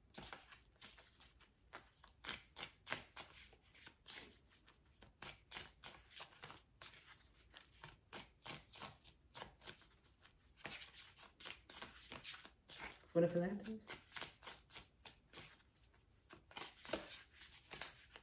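Cards rustle and slide against each other in quick, steady handling.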